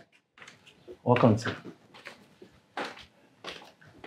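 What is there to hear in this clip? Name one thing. Footsteps sound on a hard floor.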